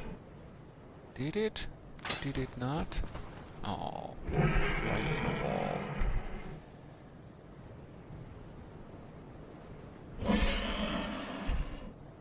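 A large dragon roars loudly overhead.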